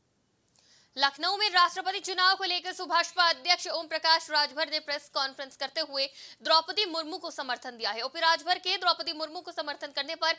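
A young woman reads out news clearly and steadily through a microphone.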